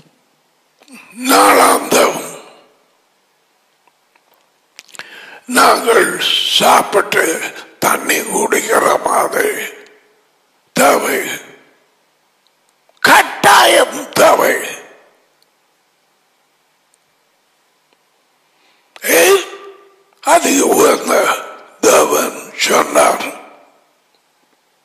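An elderly man speaks with animation into a close headset microphone, in short bursts with pauses.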